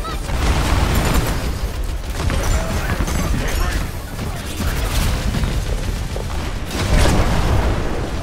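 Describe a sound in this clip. Game weapons fire with sharp electronic bursts.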